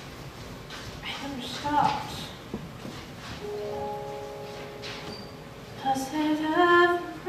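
A young woman sings softly.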